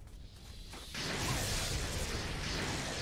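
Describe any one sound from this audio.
Lightning crackles and roars with a rushing burst.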